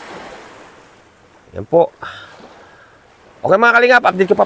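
Calm sea water laps softly against rocks.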